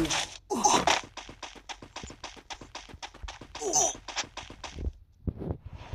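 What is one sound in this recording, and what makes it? Footsteps run quickly across a hard floor.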